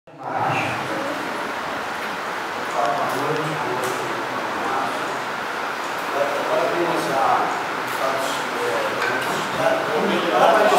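A man speaks through a microphone and loudspeakers in a large echoing hall.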